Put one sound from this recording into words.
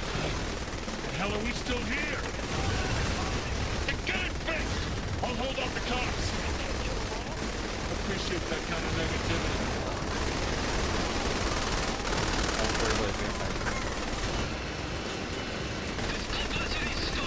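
A gun fires in rapid bursts.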